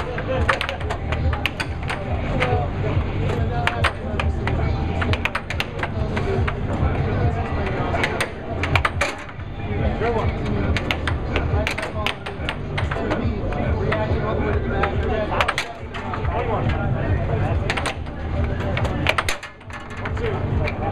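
An air hockey puck clacks sharply against mallets and the table rails.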